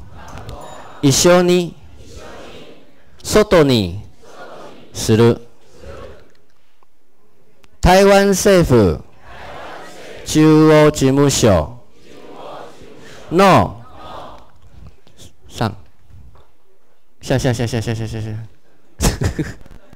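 A young woman speaks clearly into a microphone, reading out phrases in bursts over a loudspeaker.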